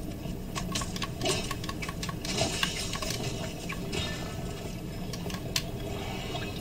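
Sword swings and hits clang in a video game.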